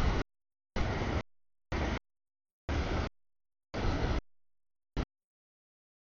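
A crossing bell clangs in a steady rhythm.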